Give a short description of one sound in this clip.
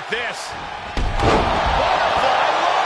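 A heavy body slams down with a loud thud.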